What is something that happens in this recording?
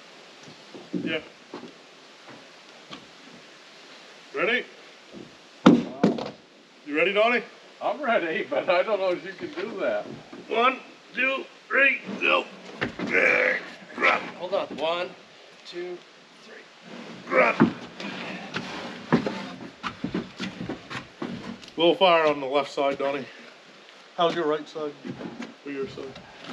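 Men talk calmly to each other outdoors.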